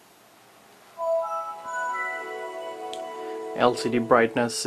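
A laptop plays a short melodic startup chime through its small speakers.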